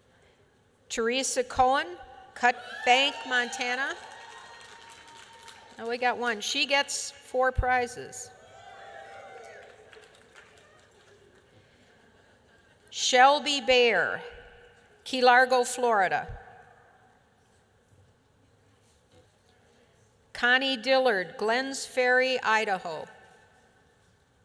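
An elderly woman speaks calmly into a microphone, with pauses.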